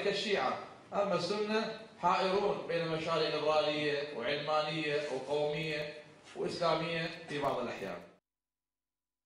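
A middle-aged man speaks forcefully into a microphone.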